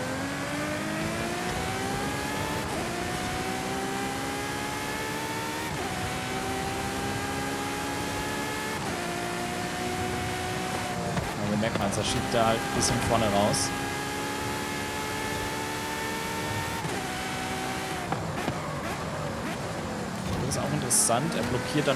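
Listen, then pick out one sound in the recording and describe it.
A sports car engine roars at high revs, rising in pitch and dropping with each gear change.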